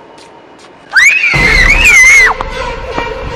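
A woman screams in fright.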